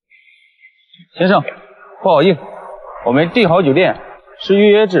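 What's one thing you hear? A man speaks politely close by.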